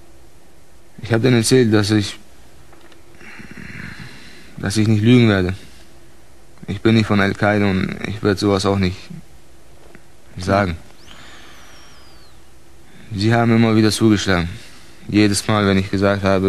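A man speaks calmly in low, halting bursts, heard close through a microphone.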